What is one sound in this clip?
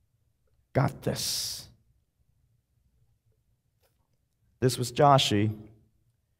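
A man speaks into a microphone in short phrases, with pauses.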